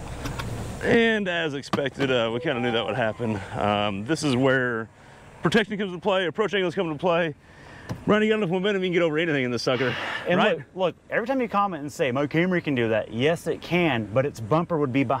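A middle-aged man talks with animation close to a microphone, outdoors.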